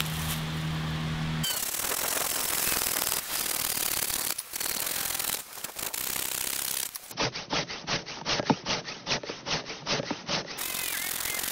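A hand saw cuts through wood with quick, rasping strokes.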